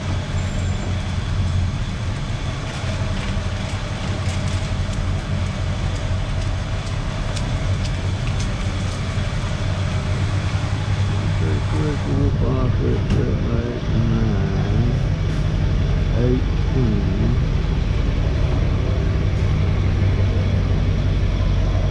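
A mobility scooter's electric motor hums steadily.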